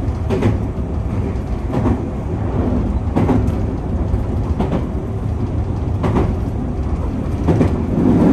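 Train wheels click rhythmically over rail joints.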